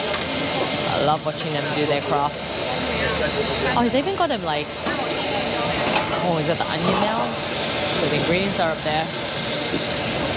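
A crowd of people chatters nearby on a busy street.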